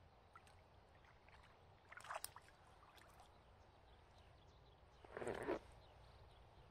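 A fish splashes at the water's surface close by.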